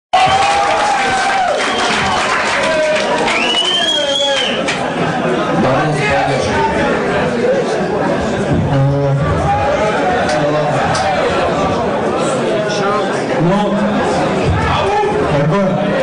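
Live music plays loudly through loudspeakers.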